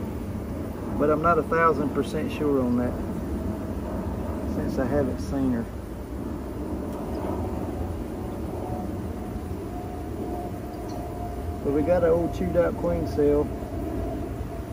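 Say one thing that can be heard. Bees buzz steadily all around.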